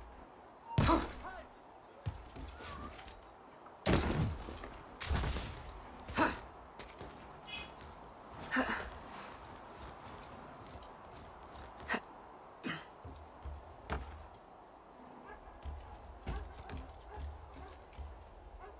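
Soft thuds and scuffs sound as a figure climbs and runs across a rooftop.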